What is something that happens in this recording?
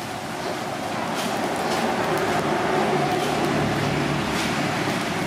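Food sizzles on a hot grill.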